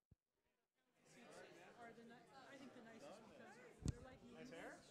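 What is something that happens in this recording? A crowd of people murmurs and talks in a large hall.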